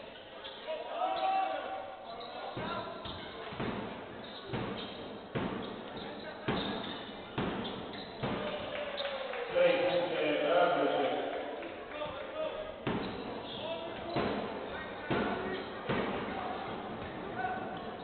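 A basketball bounces repeatedly on a wooden floor in a large echoing hall.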